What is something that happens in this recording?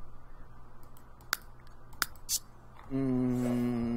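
A soft interface click sounds.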